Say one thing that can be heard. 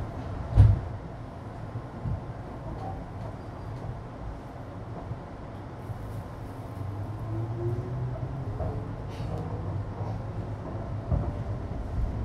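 A train car's body rattles and clunks as it rides.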